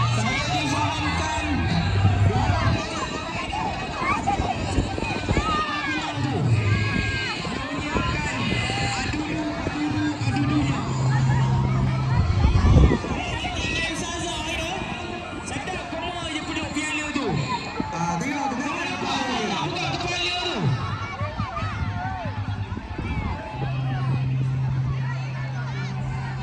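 A crowd of children shout and chatter loudly outdoors.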